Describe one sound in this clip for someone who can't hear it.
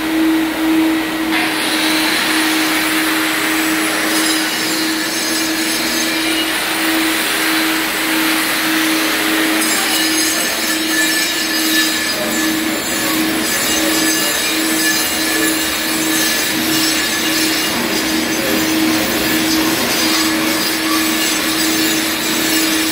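An angle grinder motor whines steadily.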